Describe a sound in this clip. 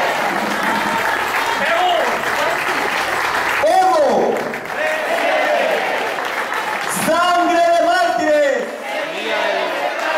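A middle-aged man sings loudly through a microphone and loudspeaker.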